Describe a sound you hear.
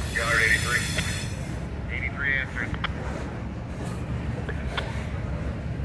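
Wheels clack over rail joints.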